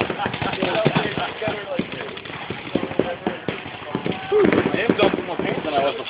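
Paintball guns pop with quick, sharp shots.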